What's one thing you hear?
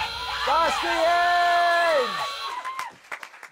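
A young man shouts excitedly over a microphone.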